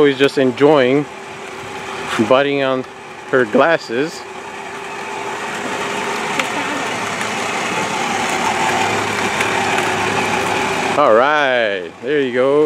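A toy electric car's motor whirs steadily.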